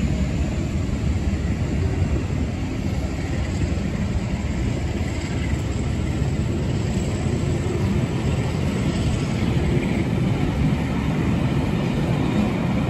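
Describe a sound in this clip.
Railway carriages rumble and clatter steadily along the tracks close by.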